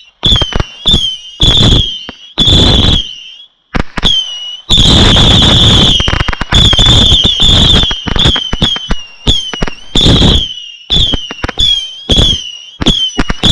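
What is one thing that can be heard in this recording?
Fireworks bang and crackle in rapid bursts.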